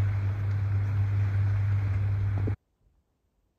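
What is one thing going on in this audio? Strong wind roars through trees.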